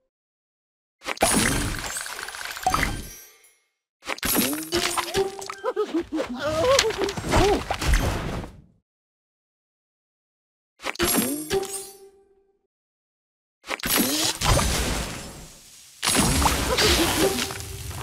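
Game chimes and sparkly effects sound as candies match and burst.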